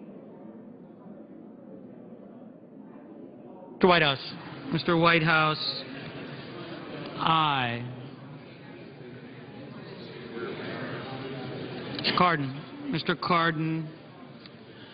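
Many men murmur and chat quietly in a large echoing hall.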